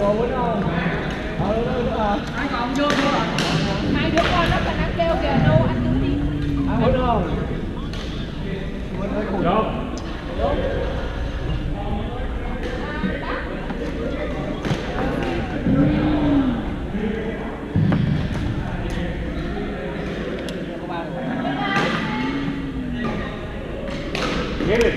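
Young men talk and call out casually in a large echoing hall.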